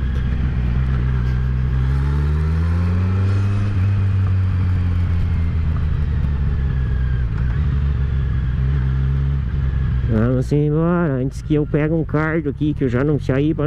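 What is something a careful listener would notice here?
A motorcycle engine hums and revs up as the bike rides along.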